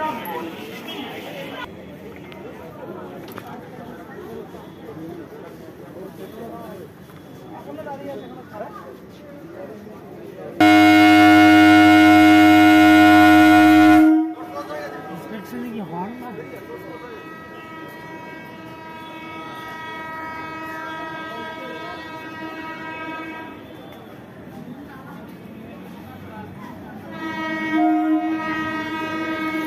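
People murmur on a busy platform.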